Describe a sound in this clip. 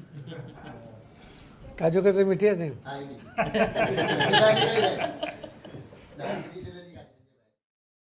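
Several men laugh together nearby.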